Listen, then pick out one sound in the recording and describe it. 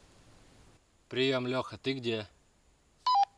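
A young man calls out loudly outdoors.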